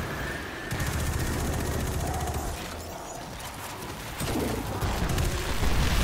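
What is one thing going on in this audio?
Explosions burst with crackling sparks.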